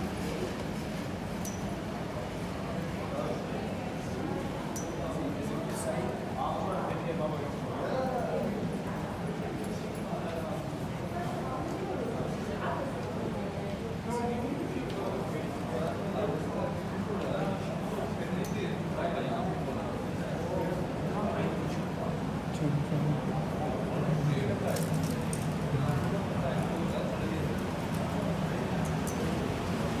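Suitcase wheels roll along the floor.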